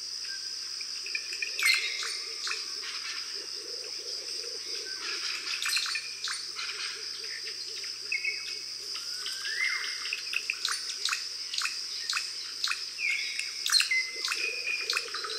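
An otter squeaks and chirps in short, high calls.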